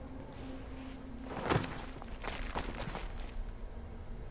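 Heavy footsteps thud and scrape on rough ground.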